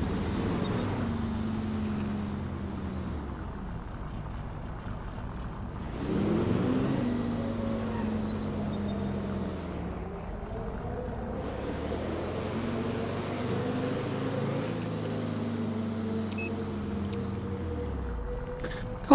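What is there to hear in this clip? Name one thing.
A car engine hums and revs as the car drives along.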